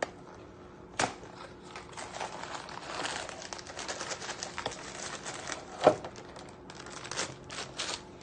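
Powder rustles and pours from a box into a bowl.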